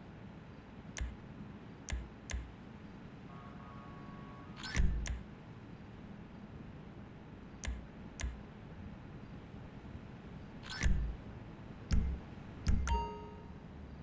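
Short game menu clicks sound now and then.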